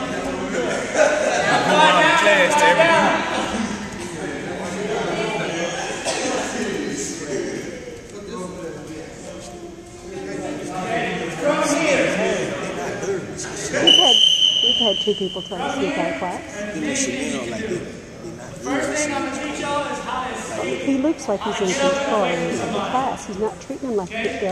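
A young man instructs a class in a large echoing gym.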